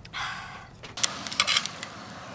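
Metal tongs scrape and clink in a frying pan.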